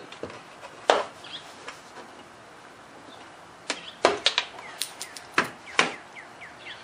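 A plastic trim panel clicks and snaps as it is pried loose.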